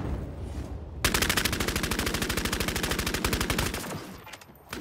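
Rapid gunfire rattles nearby.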